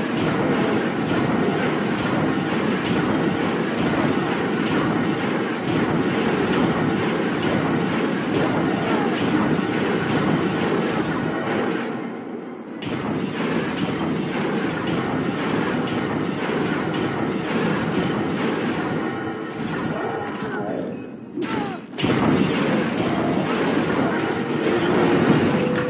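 Magic blasts crackle and burst in quick succession.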